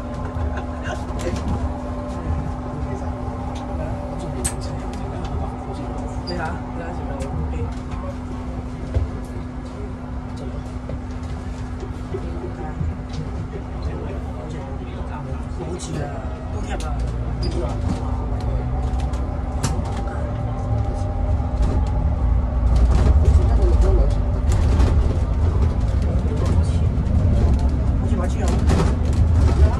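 A bus rattles and creaks as it drives.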